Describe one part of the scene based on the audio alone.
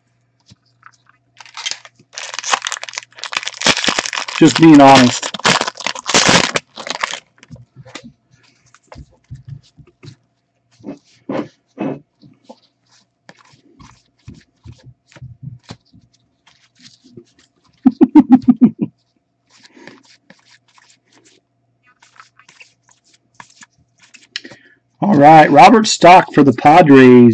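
Trading cards rustle and slide against each other in gloved hands.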